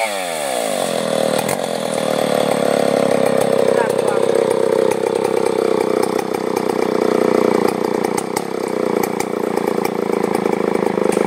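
A chainsaw engine revs up and then runs loudly at a steady pitch.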